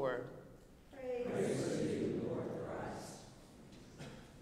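A congregation sings a short response together.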